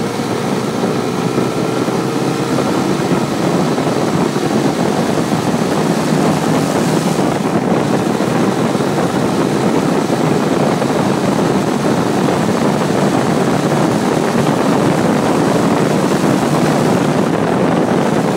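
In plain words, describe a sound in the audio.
Wind roars loudly past the microphone, outdoors on a moving motorcycle.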